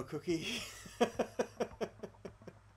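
A man laughs heartily over an online call.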